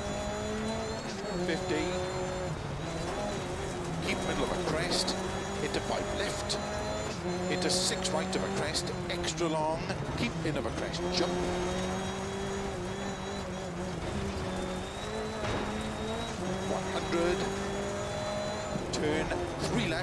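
A rally car engine roars loudly, rising and dropping in pitch as it shifts gears.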